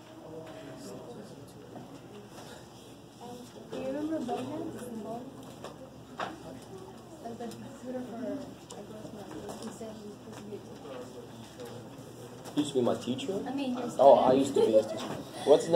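A man lectures in a calm, clear voice in a room with a slight echo.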